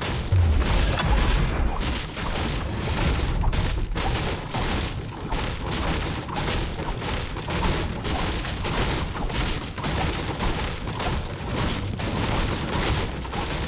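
A pickaxe strikes wood in quick, repeated blows.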